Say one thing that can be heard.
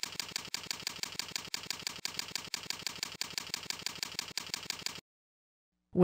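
Keys clack quickly on a keyboard.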